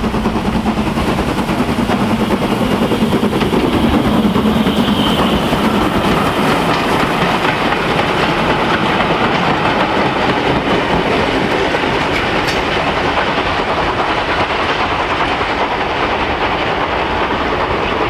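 A steam locomotive chuffs hard as it passes close by.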